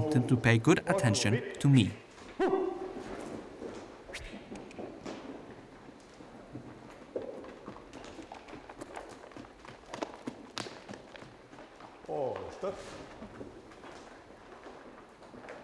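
A horse trots with soft, muffled hoofbeats on sand.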